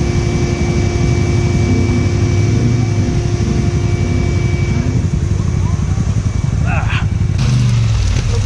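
An engine idles with a low, steady rumble.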